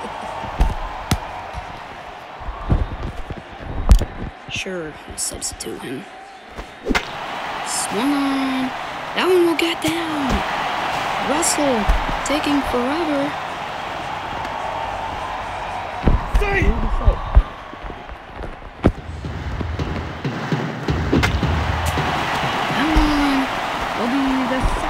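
A stadium crowd cheers and murmurs steadily.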